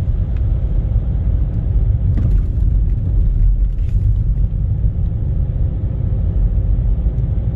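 A car's engine hums steadily.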